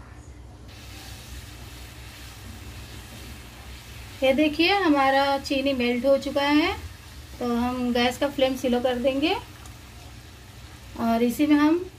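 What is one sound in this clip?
A spatula scrapes and stirs in a pan.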